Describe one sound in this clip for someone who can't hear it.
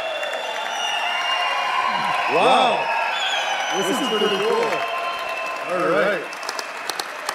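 A crowd cheers and whoops loudly in a large echoing hall.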